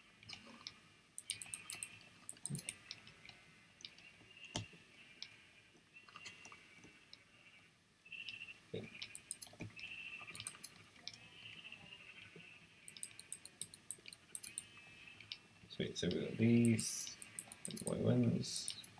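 Shears snip wool in quick clicks.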